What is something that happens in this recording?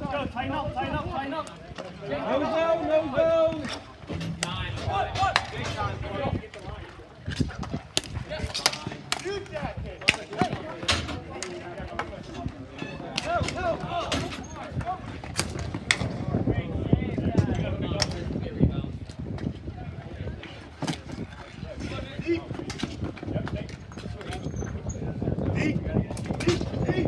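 Young players shout and call out to each other nearby.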